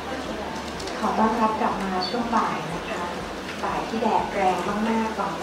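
A man speaks into a handheld microphone through loudspeakers.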